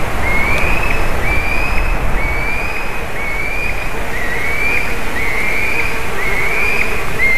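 A young bird of prey cries with a high, thin whistle, over and over about once a second.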